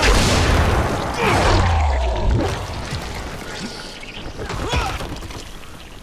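A blade strikes and slashes flesh with wet thuds.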